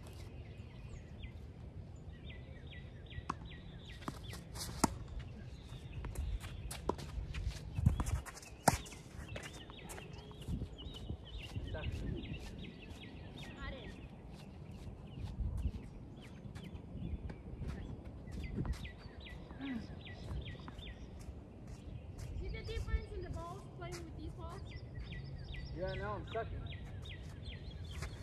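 Tennis balls pop off rackets in a back-and-forth rally outdoors.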